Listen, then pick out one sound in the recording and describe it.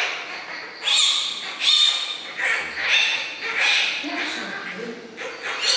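A newborn panda cub squeals in short, shrill bursts again and again.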